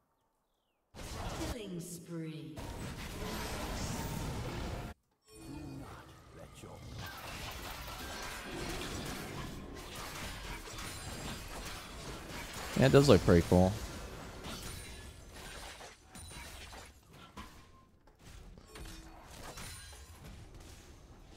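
Game sound effects of spells and clashing weapons play.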